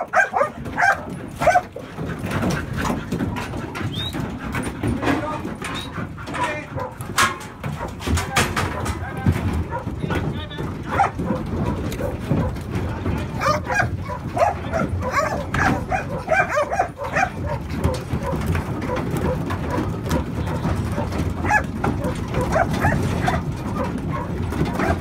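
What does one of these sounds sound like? Sheep hooves clatter and shuffle on a metal floor.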